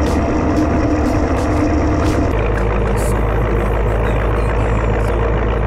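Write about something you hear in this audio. A small locomotive engine rumbles steadily.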